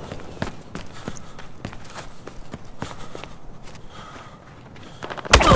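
Footsteps thud quickly across a hard floor.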